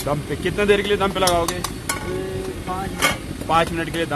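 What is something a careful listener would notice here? A metal lid clanks down onto a wok.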